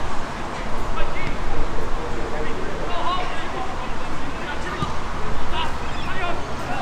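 Young players shout to each other across a field.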